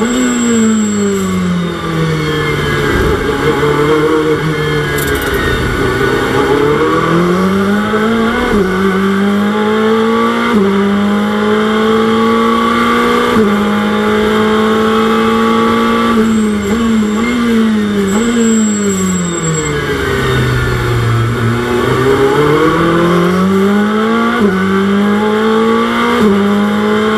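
A racing car engine roars, rising and falling in pitch as it shifts gears and brakes.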